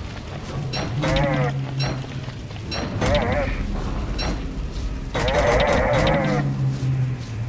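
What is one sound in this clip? A warbling, buzzy game voice babbles in short bursts.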